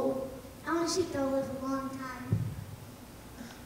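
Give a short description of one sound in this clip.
A young actor speaks clearly in a large echoing hall.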